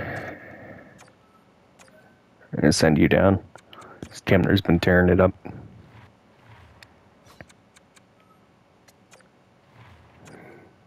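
Soft interface clicks tick now and then as selections change.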